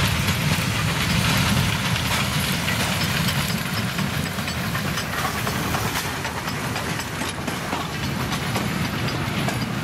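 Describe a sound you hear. Train wheels clatter over rail joints as the train passes close by.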